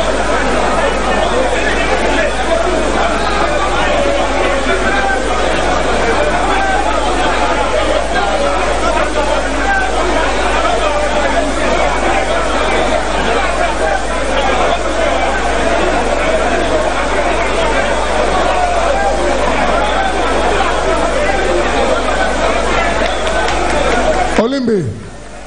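A large crowd chatters and shouts loudly in a big hall.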